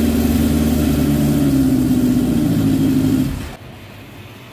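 A motorcycle engine runs loudly, with a steady rumble.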